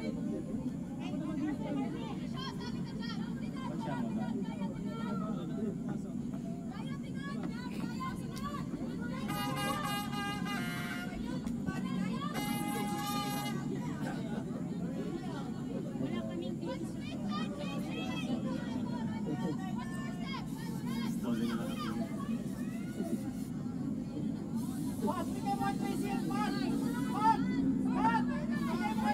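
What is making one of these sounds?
Young women call out to one another across an outdoor sports pitch.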